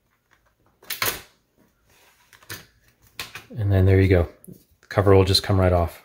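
A plastic laptop cover snaps loose and is lifted off.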